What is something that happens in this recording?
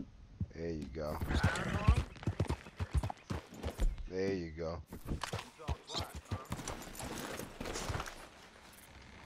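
A horse's hooves thud quickly on a dirt path.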